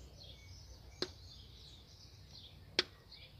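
Plastic wire connectors click and rattle under fingers.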